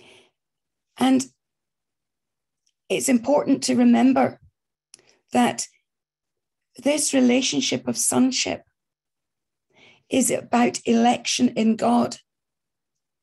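An older woman speaks calmly, in pauses, close to a microphone as if on an online call.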